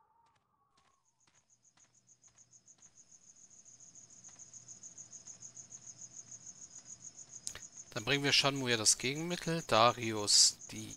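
Footsteps of marching soldiers tramp steadily and grow louder.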